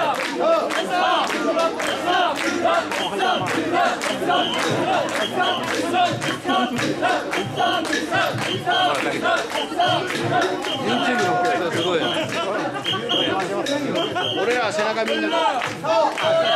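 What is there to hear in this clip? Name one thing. A large crowd of men chants loudly in rhythm, close by, outdoors.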